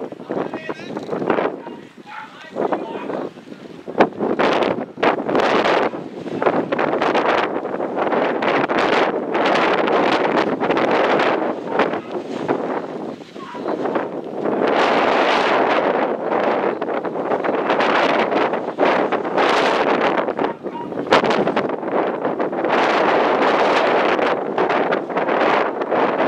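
Wind gusts roar across the microphone outdoors.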